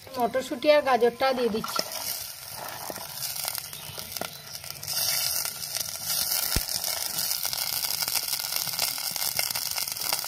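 Peas and carrot pieces drop into a pot.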